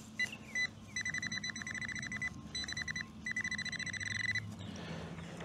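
A metal detector beeps rapidly in short bursts.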